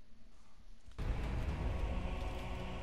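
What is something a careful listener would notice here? A low rumble with crackling effects plays.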